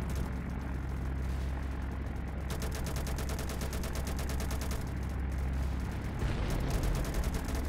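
A propeller plane's engines drone steadily.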